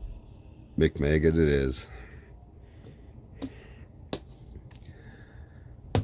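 A small toy is set down on a plastic board with a light tap.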